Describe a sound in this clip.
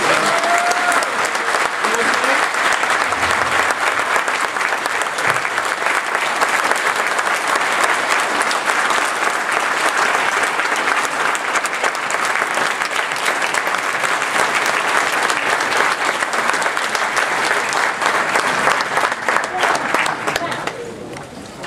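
A large crowd applauds and cheers loudly in a big hall.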